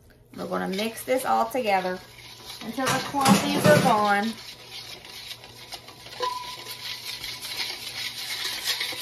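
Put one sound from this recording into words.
A wire whisk beats a thin batter in a metal bowl, clinking rapidly.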